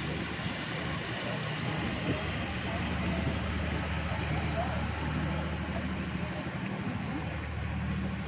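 A boat engine hums low and steady close by.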